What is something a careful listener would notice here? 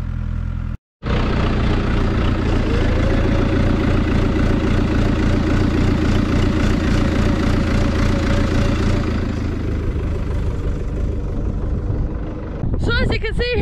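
A tractor engine idles with a steady low rumble close by.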